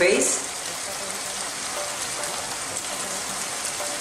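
Liquid pours into a sizzling pan.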